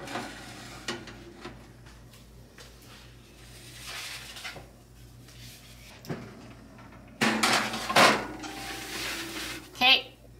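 A metal oven rack slides and rattles.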